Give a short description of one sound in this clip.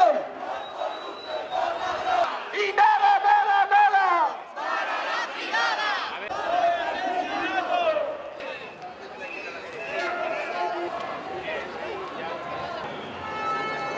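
A crowd chants outdoors.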